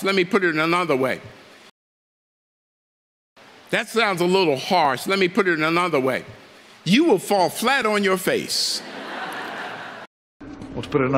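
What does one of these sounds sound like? A man speaks with emphasis into a microphone to an audience.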